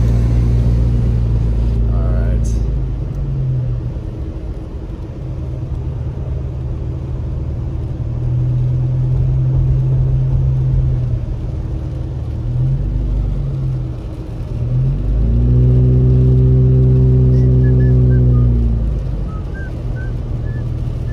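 A car engine hums from inside the car, rising and falling in pitch.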